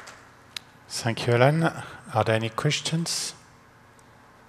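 A young man speaks into a microphone in a large hall.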